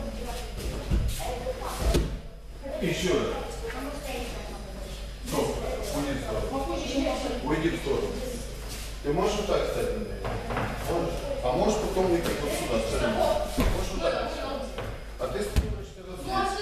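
Bodies thud onto floor mats.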